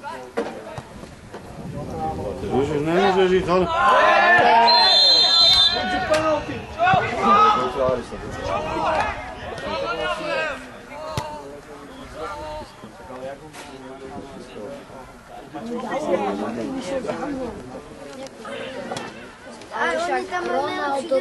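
Men talk and call out to each other outdoors at a distance.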